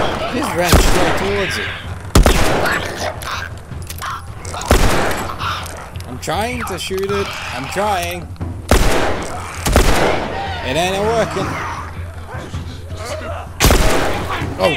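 Gunshots bang out now and then.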